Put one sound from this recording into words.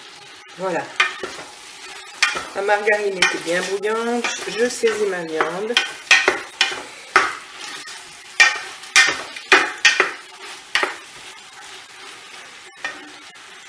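A wooden spoon scrapes and knocks against a metal pot while stirring.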